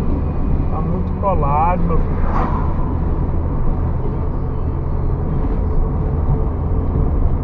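A car drives steadily along a highway with a low rumble of road noise.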